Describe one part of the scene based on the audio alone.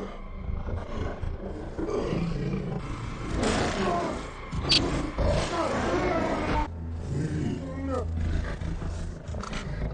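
A large beast snarls and roars close by.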